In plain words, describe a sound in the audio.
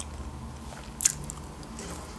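A woman takes a crunchy bite of food close to a microphone.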